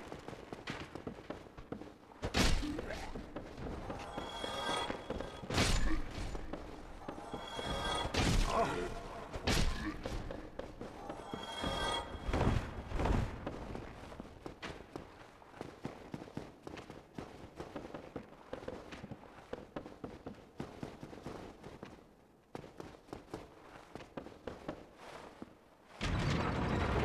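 Armoured footsteps clank quickly on stone and wooden stairs.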